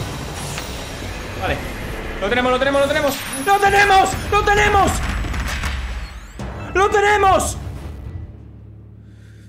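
Loud game battle effects rumble and blast.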